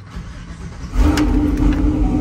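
A car engine revs up loudly.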